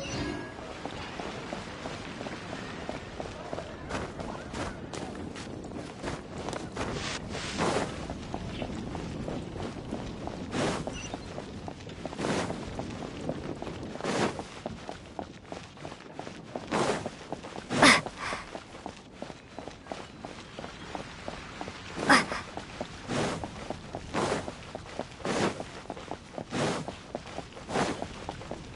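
Quick footsteps patter on stone paving and steps.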